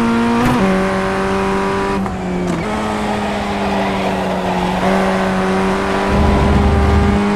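A race car engine drones loudly at high speed, shifting gears with sudden pitch drops.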